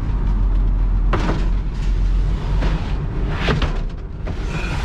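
Wooden boards knock and thud inside a van.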